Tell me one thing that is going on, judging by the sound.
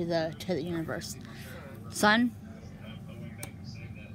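A hardcover book shifts and scrapes softly on carpet.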